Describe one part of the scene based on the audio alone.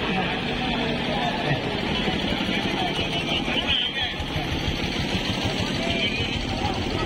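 Hand drums beat a fast, steady rhythm close by.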